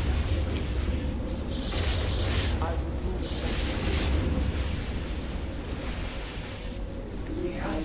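Laser weapons fire in bursts.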